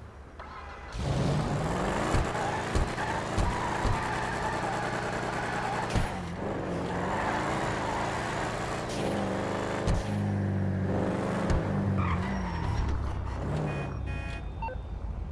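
A car engine revs loudly with crackling exhaust pops.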